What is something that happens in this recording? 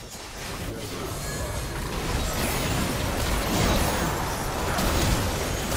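Magic spells crackle and blast in a busy video game fight.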